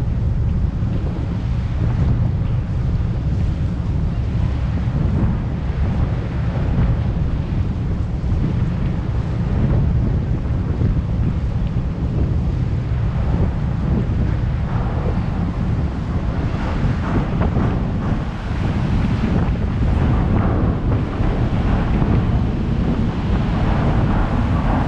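Wind buffets and rumbles outdoors throughout.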